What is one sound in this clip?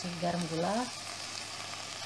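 Salt pours into a pot with a soft hiss.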